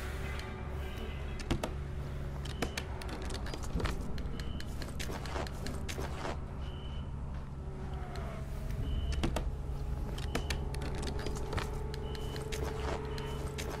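A wooden crate lid creaks and thuds open.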